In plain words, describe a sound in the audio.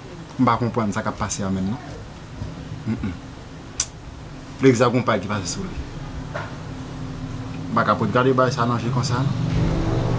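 A young man speaks calmly and quietly, close by.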